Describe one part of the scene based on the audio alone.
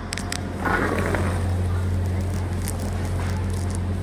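High heels click on a hard floor as people walk.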